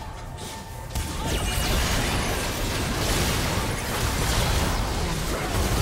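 Magic blasts whoosh and crackle in a chaotic fantasy battle.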